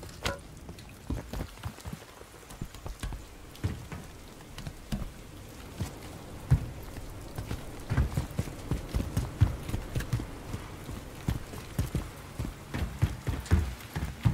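Heavy footsteps thud quickly on a hard roof.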